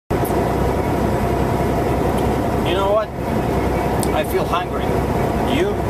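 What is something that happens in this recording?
A truck engine rumbles steadily inside the cab.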